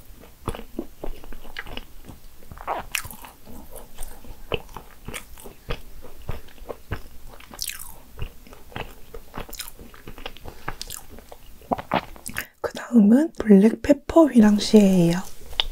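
Soft cake squishes and tears apart close to a microphone.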